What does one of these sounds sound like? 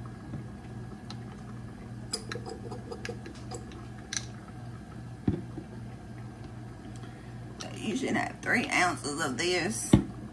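Liquid trickles from a glass bottle into a plastic bottle.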